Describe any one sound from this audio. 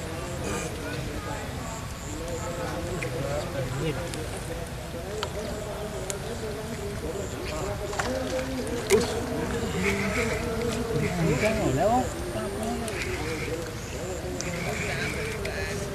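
Men talk nearby outdoors.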